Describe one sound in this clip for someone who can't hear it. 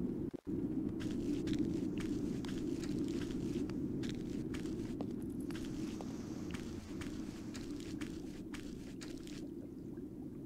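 Footsteps tread on grass at a steady pace.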